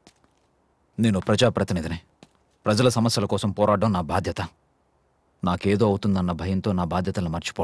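A man speaks tensely and forcefully, close by.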